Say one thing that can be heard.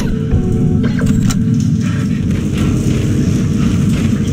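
Heavy armoured footsteps clank on a metal floor.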